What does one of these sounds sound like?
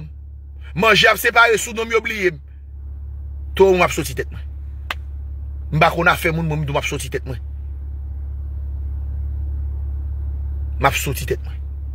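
A man speaks with animation close to a phone's microphone, in short bursts with pauses.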